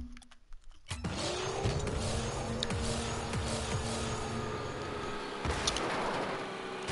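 A game car's engine roars loudly.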